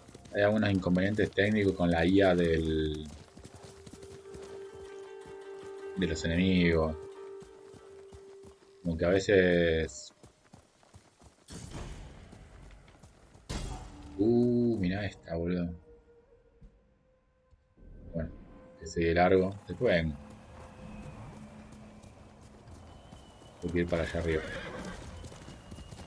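A man talks into a close microphone with animation, in short bursts.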